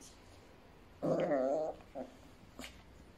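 A puppy whines in a high, wavering voice.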